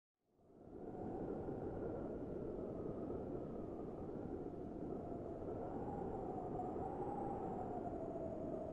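A huge machine rumbles and groans steadily.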